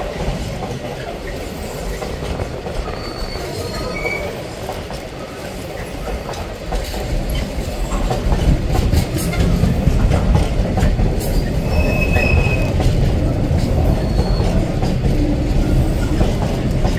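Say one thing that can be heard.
A freight train rumbles past close by, growing louder.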